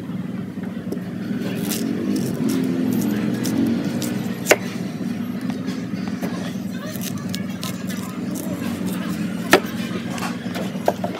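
A knife slices through soft plant flesh with a crisp scraping sound.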